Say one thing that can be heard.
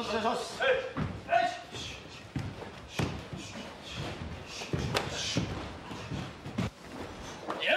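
Kicks and punches thud during sparring.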